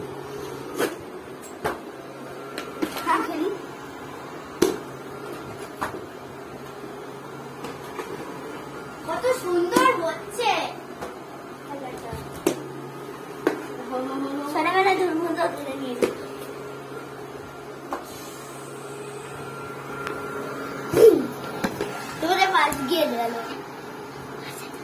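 A hover ball toy hums steadily as it glides across a hard floor.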